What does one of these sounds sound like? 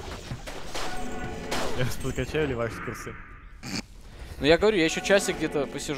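Magic spells burst and crackle in a fight.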